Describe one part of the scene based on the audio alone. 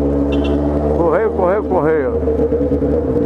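A motorcycle engine revs up and down quickly.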